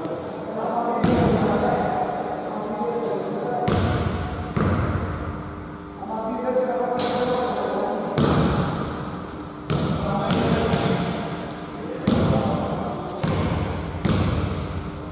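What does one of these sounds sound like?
A basketball bounces with echoing thuds in a large hall.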